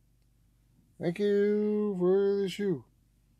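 A man lets out a long, drawn-out cry close to a microphone.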